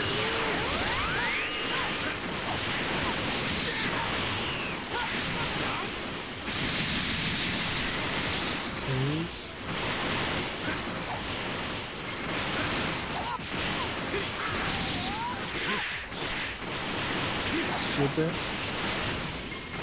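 Energy beams whoosh and roar.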